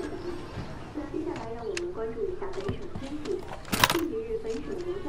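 A woman's voice speaks calmly through a small radio loudspeaker.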